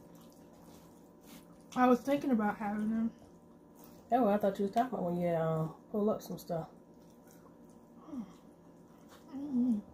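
A girl bites into crispy fried food with a crunch.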